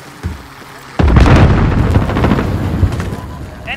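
A rifle fires loud, rapid bursts of gunshots.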